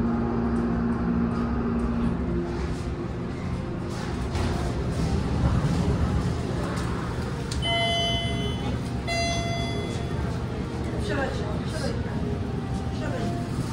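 A steady hum and murmur of a large store fills the air.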